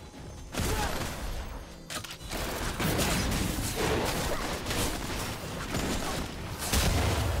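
Game spell effects burst and clash in a loud fight.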